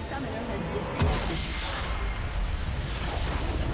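A magic spell bursts with a crackling electric blast.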